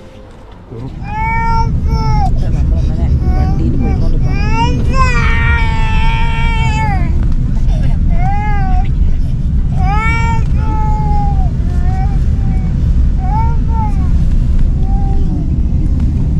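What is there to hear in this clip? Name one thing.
A young woman sings softly close by.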